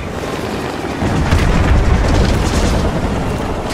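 Explosions rumble in a deep, heavy roar.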